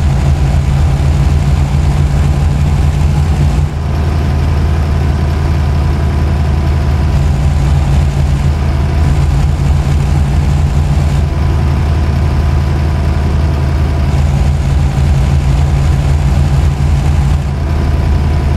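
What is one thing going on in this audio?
A truck engine hums steadily at a low pitch while driving.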